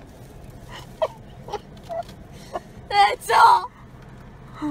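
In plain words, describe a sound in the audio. A young girl laughs and squeals close by.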